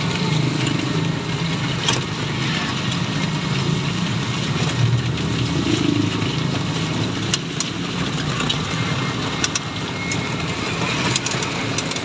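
Tyres hiss through water on a wet road.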